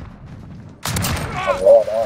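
A rifle fires in short, sharp bursts.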